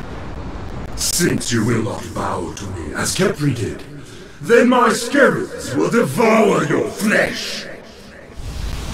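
A deep, menacing male voice speaks slowly and loudly.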